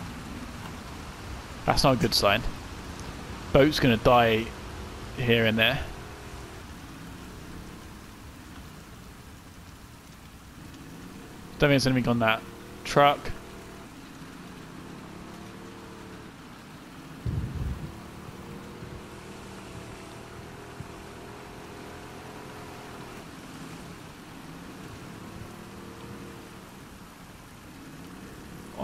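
Rain patters steadily on water.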